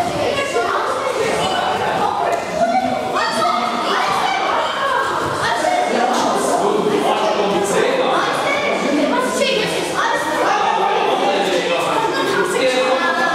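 A group of children chatter together in an echoing hall.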